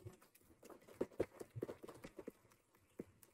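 A woman claps her hands softly.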